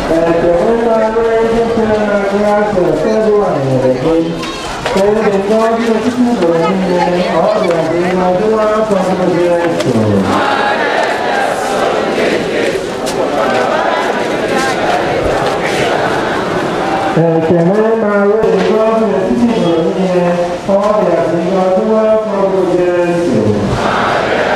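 A large crowd sings a slow hymn together.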